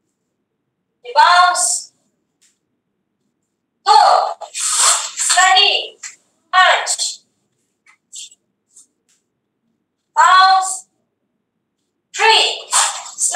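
A young woman calls out exercise counts in short, loud bursts over an online call.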